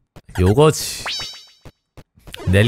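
A bright electronic chime rings out, rising in quick steps.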